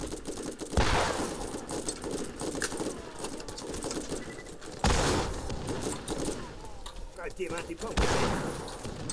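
A rifle fires loud, booming shots that echo.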